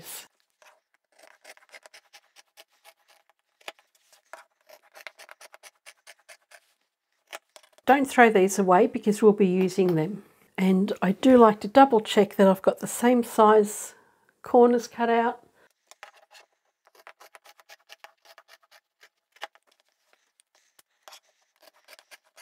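Scissors snip through fabric with soft, quick crunches.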